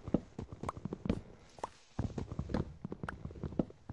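Wooden blocks break with a crunching pop.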